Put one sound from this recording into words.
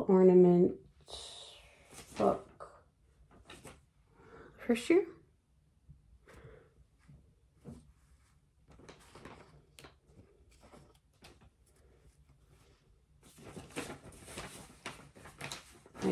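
Fabric rustles as it is handled.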